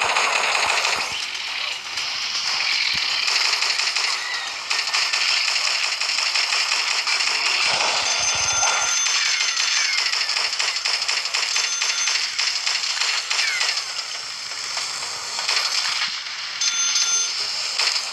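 A heavy machine gun fires in rapid, continuous bursts.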